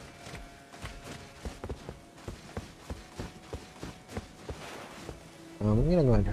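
Footsteps thud quickly on stone.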